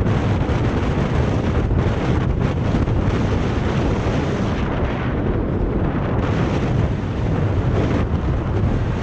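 Wind buffets loudly and steadily, as when riding a bicycle outdoors.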